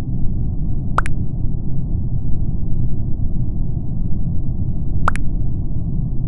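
A short bright chime sounds twice as new chat messages pop up.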